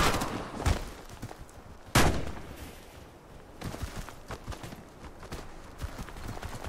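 A man talks into a close microphone.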